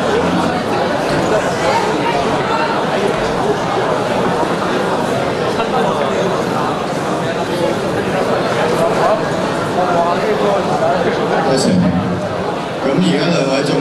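Young men speak with animation, heard through loudspeakers in a large hall.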